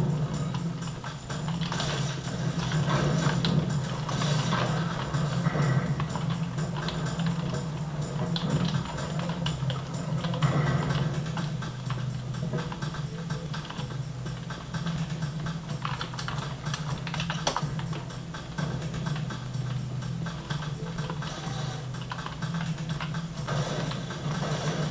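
Keys on a keyboard click and clatter rapidly.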